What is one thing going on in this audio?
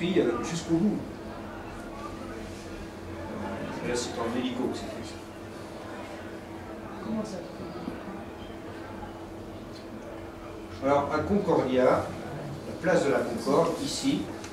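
An older man speaks calmly and with pauses.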